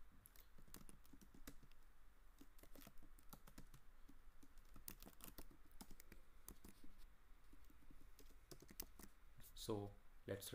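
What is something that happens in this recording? Keyboard keys click rapidly as someone types.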